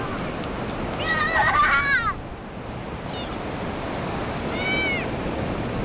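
A small child squeals with excitement close by.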